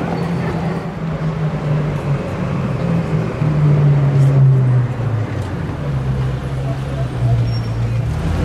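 A sports car engine rumbles deeply as the car rolls slowly past.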